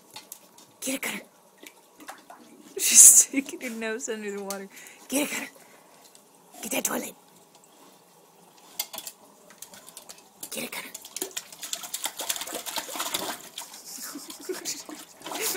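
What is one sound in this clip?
A dog laps water noisily from a toilet bowl.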